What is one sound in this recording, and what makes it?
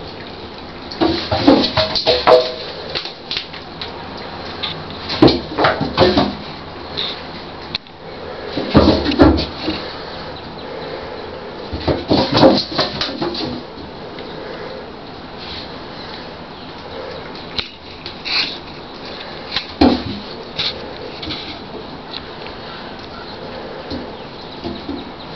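A kitten's paws scrabble and skid on a bathtub's slick surface.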